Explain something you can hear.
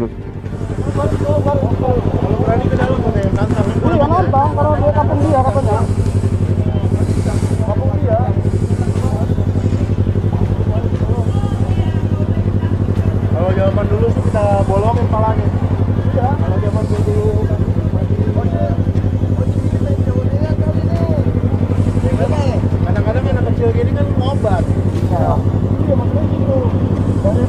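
Motorcycle engines idle with a steady low rumble.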